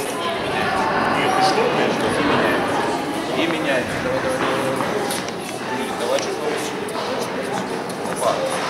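Tennis balls bounce on a hard floor.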